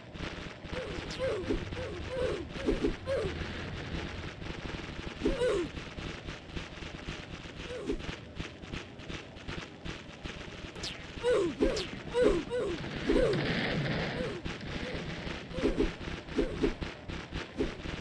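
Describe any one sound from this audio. Creatures let out short, falling shrieks again and again.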